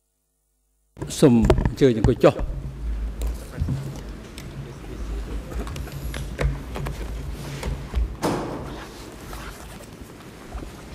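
Chairs creak and shuffle as people sit down.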